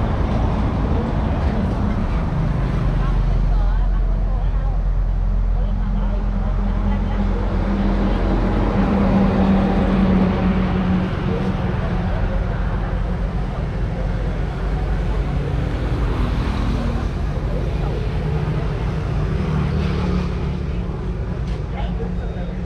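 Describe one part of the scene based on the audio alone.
A motor scooter engine idles and rumbles close by.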